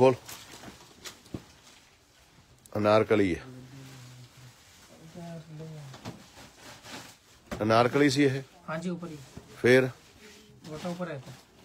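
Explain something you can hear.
Fabric rustles as it is unfolded and spread out.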